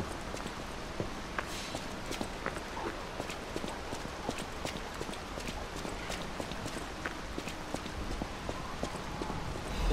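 Footsteps clack on hard ground at a steady pace.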